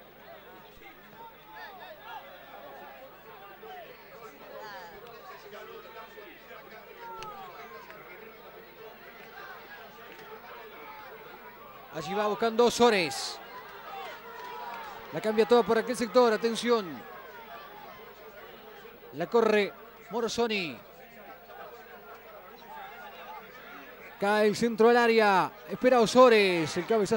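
A crowd murmurs in the distance.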